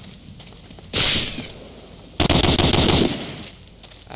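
A rifle fires loud shots nearby.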